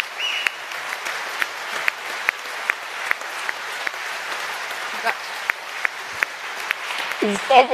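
An audience applauds steadily in a large hall.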